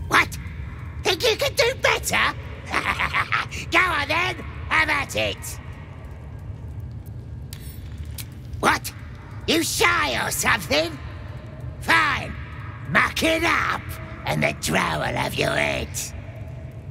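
A man speaks in a gruff, mocking voice, close by.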